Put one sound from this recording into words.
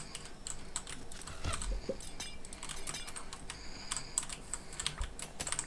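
Footsteps patter quickly on hard blocks.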